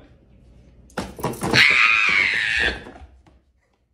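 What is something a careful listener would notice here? A woman screams loudly.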